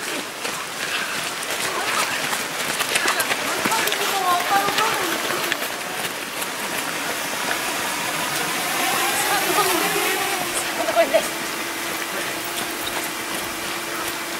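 Runners' footsteps patter on a gravel path.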